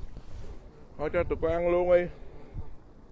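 Canada geese honk.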